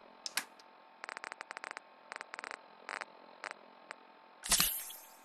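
Short electronic clicks tick as menu items are scrolled.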